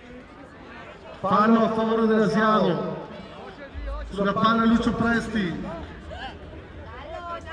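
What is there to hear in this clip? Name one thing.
Football players call out to each other across an outdoor pitch.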